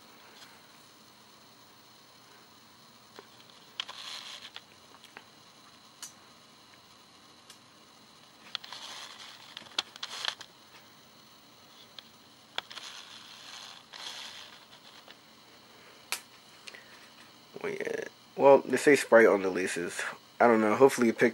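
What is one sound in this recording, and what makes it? A fabric strap rustles softly as it is handled.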